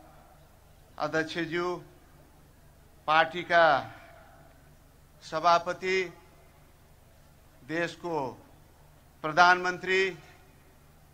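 A middle-aged man speaks slowly and forcefully through a microphone and loudspeakers, pausing between phrases.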